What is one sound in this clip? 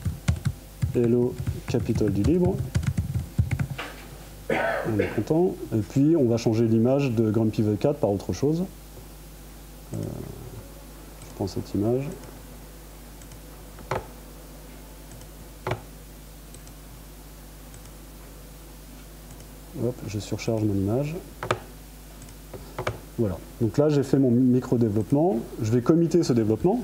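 A man speaks calmly through a microphone in an echoing room, with pauses.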